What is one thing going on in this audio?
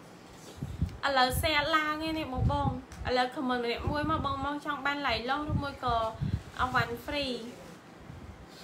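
A young woman speaks calmly close to a microphone.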